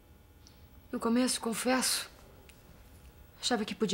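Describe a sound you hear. A young woman speaks softly and sadly close by.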